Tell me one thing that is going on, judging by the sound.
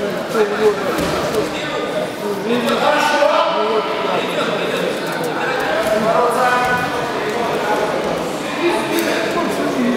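Spectators shout and call out encouragement in a large echoing hall.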